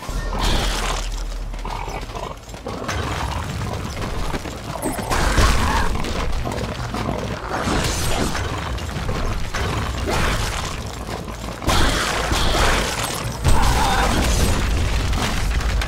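Heavy hooves of a large beast thud along the ground.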